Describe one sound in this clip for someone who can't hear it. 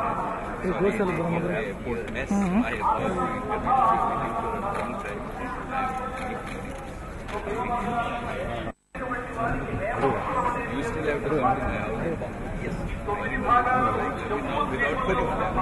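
Several men chatter in the background.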